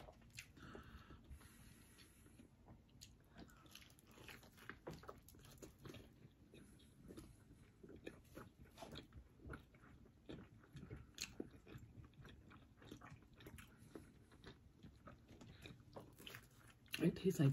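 Food is chewed with smacking lips close by.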